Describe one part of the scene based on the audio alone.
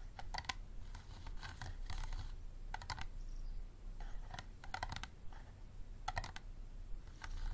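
Fingers tap and crinkle a plastic bottle in crisp bursts.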